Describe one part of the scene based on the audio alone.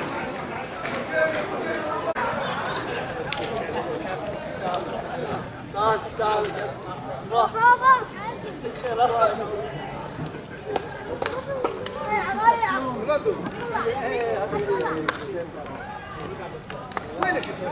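Men talk and call out excitedly nearby, outdoors.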